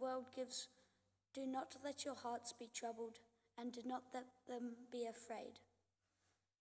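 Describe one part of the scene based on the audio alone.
A boy reads out through a microphone in a large echoing hall.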